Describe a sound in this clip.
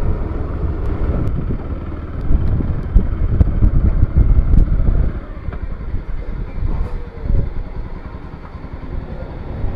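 A motorcycle engine idles and rumbles up close.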